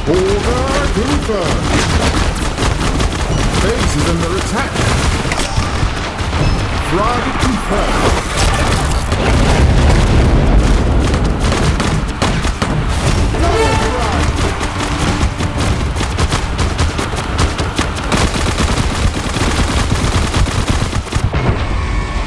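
Rapid gunfire from a game crackles and pops.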